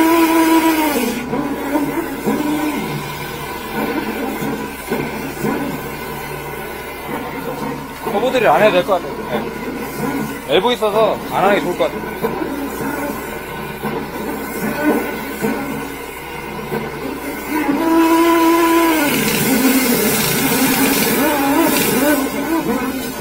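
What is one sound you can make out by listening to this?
A refrigeration unit hums steadily.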